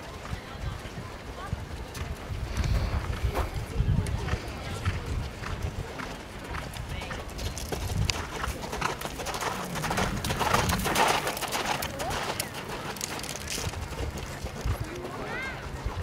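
A horse's hooves thud on soft ground as it canters.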